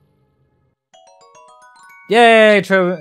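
A bright chime rings out as a gem is collected.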